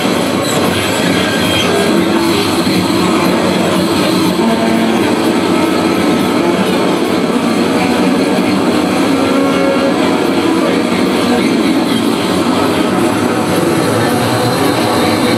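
Loud, dense music plays on a keyboard.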